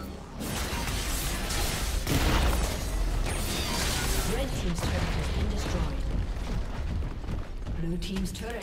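Magic spells crackle and whoosh during a fierce fight.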